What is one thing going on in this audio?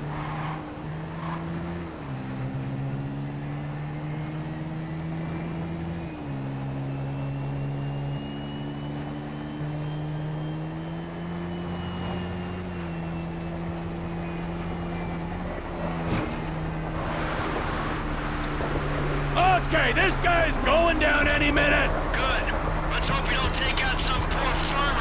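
A motorcycle engine hums steadily, its pitch shifting as it changes gear.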